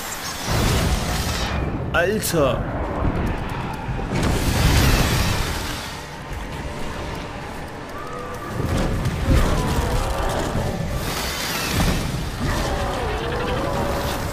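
A monster screeches and roars.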